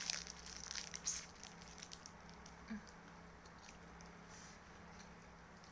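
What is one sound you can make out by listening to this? A young woman chews food noisily up close.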